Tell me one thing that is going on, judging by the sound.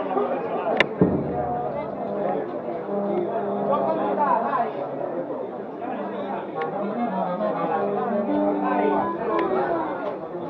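A brass band plays a slow tune nearby.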